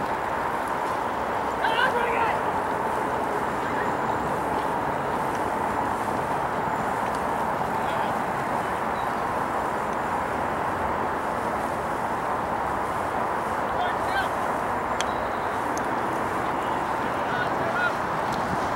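Horses gallop across turf, hooves thudding.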